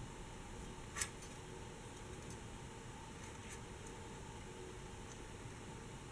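Glass beads click faintly against a metal crochet hook.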